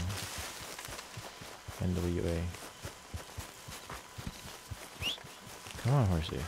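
Footsteps thud quickly through grass.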